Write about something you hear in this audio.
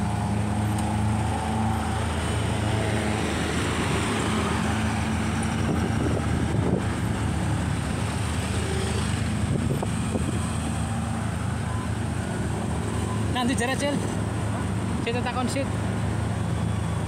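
Traffic passes on a nearby road.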